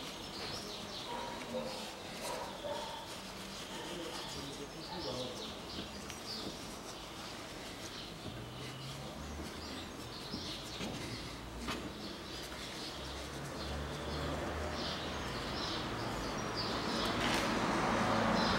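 A cloth rubs softly against a car's paintwork.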